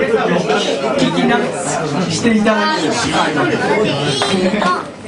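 A young man sings loudly into a microphone over a live band.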